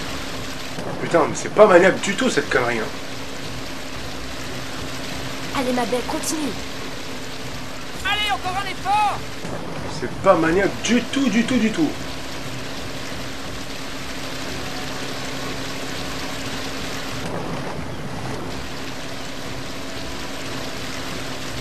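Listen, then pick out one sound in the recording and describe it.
Water sprays and splashes under a skimming water jet.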